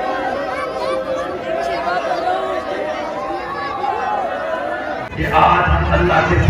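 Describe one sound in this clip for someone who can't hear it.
A large crowd of men chatters and calls out loudly outdoors.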